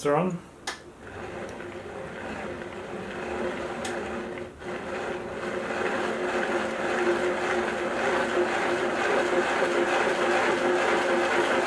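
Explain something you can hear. A geared mechanism whirs steadily as a hand crank turns it, getting slightly louder over time.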